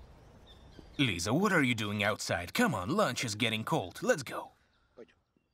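A man speaks softly and earnestly up close.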